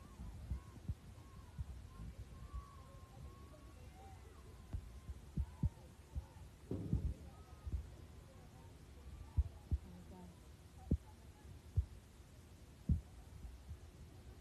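Young women shout faintly across a distant outdoor field.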